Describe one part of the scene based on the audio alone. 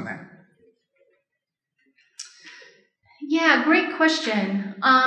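A woman speaks calmly into a microphone, heard through a loudspeaker in a large room.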